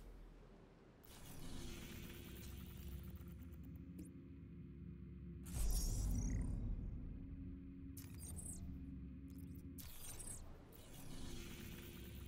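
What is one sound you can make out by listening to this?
Soft whooshing sounds play as a game map opens and closes.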